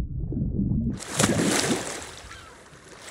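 Water splashes and hisses sharply as a swimmer breaks the surface, then fades.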